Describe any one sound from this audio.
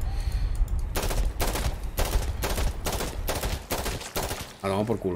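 A rifle fires a rapid series of loud shots.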